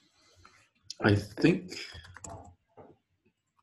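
A man speaks briefly through an online call microphone.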